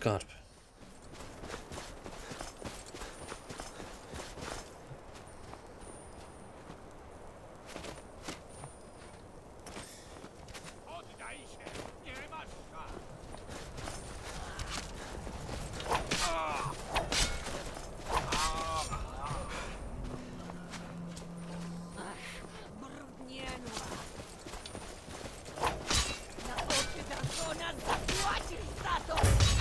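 A middle-aged man talks into a microphone.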